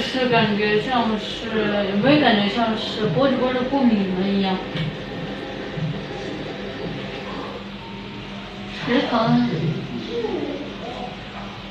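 A young woman talks playfully and with animation, close by.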